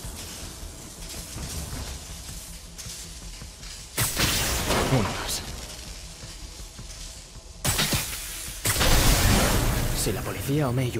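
Electric sparks crackle and fizz in short bursts.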